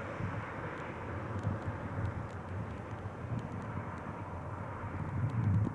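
A jet airliner's engines roar steadily in the distance.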